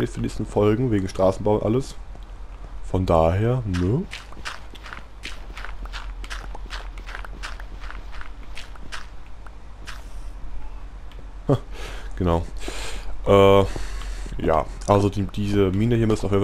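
Blocks of earth and stone crunch repeatedly as they are dug out.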